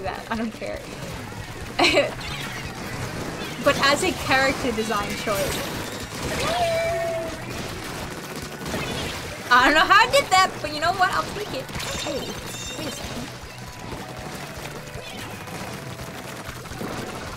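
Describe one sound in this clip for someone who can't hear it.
Ink guns fire and splatter in quick bursts.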